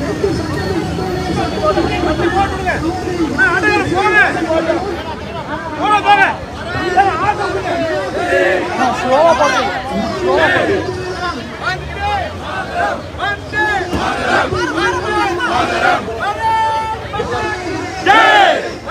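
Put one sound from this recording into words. A large crowd of men shouts slogans together outdoors.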